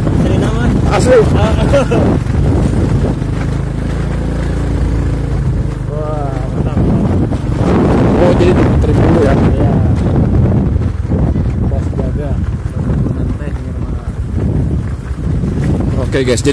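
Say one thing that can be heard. A motorbike engine rumbles steadily close by.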